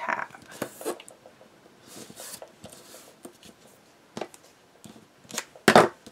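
Adhesive tape peels off a roll with a sticky rasp.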